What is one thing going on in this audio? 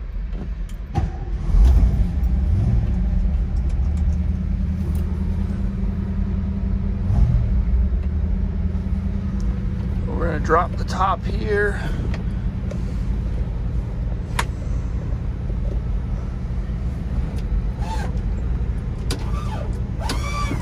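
A car engine idles with a steady low rumble.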